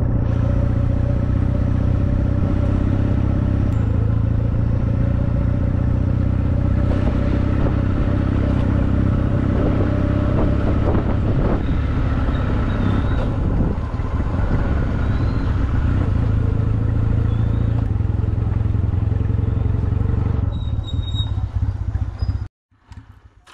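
A motorcycle engine rumbles steadily.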